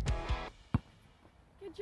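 A basketball bounces once on a hard court.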